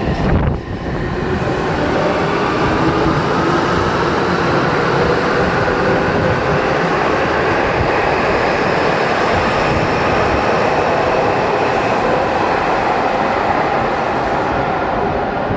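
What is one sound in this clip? A subway train roars past on the rails, echoing loudly.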